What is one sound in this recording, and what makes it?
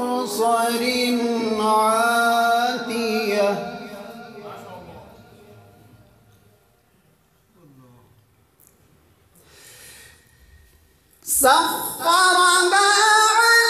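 A man chants in a sustained, melodic voice through a microphone, with echo.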